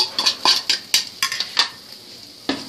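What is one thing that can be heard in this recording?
Vegetables are tapped out of a wooden bowl into a pan with quick knocks.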